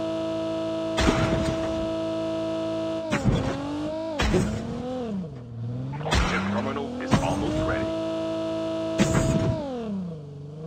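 A car bumps and thuds over rough ground.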